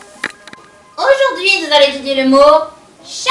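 A young woman speaks clearly with animation.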